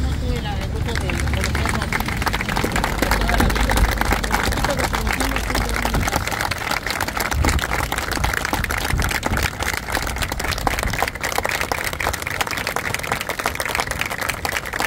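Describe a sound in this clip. A crowd claps hands steadily in applause.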